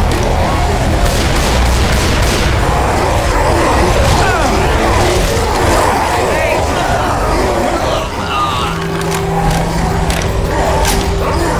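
Rapid gunshots fire in bursts.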